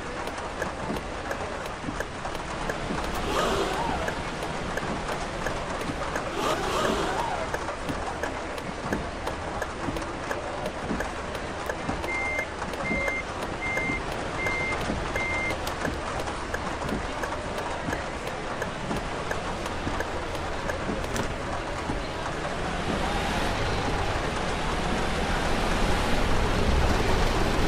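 A bus engine rumbles low and grows louder as the bus speeds up.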